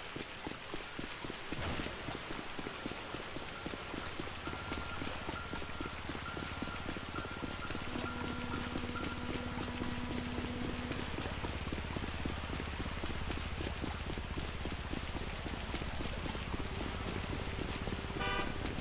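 Footsteps slap quickly on wet pavement.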